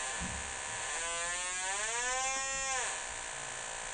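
A metal detector gives a wavering, rising and falling tone.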